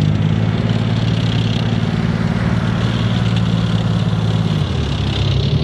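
A tracked armoured vehicle's engine roars loudly and steadily close by.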